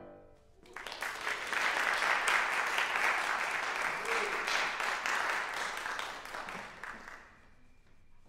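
An audience applauds in a large echoing hall.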